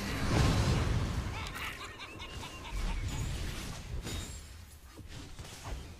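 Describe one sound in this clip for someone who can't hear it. Game spell effects whoosh and crackle in quick bursts.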